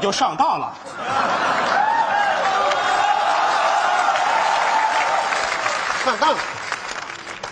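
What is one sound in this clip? A large audience applauds.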